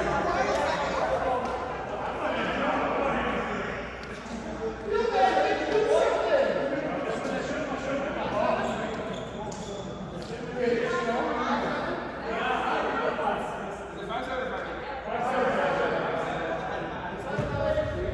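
Several young men and women talk and call out across a large echoing hall.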